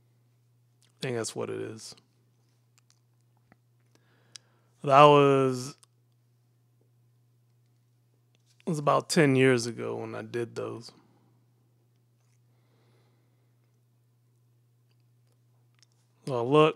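A middle-aged man speaks calmly and closely into a microphone, in short phrases with pauses.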